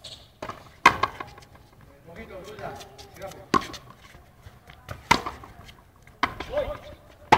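A ball smacks sharply off rackets and a wall, echoing outdoors.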